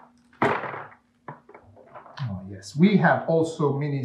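Loose plastic pieces rattle in a cardboard box.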